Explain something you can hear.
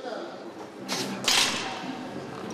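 A heavy loaded barbell clanks down onto its rack.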